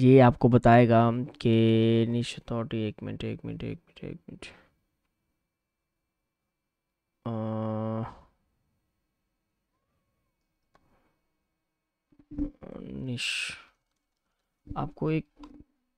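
A man speaks with animation close to a microphone, pausing now and then.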